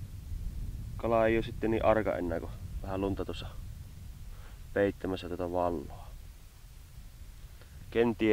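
Wind rumbles low outdoors.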